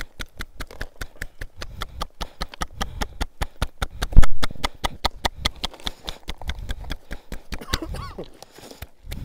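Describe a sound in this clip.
Hands slap rapidly against bare skin.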